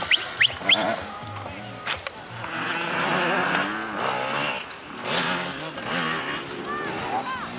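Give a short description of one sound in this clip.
A dirt bike engine revs and whines up and down nearby.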